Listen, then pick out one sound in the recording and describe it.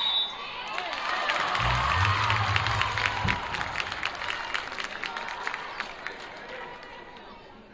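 A crowd cheers and claps in a large echoing gym.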